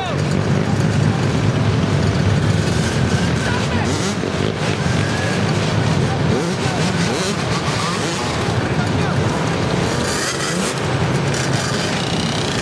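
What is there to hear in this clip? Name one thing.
Quad bike engines roar and rev nearby.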